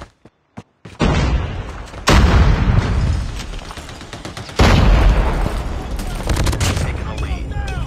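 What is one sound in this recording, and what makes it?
Rapid gunfire bursts out loudly in short volleys.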